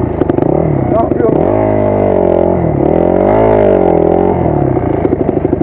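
A dirt bike engine revs up and down a few times.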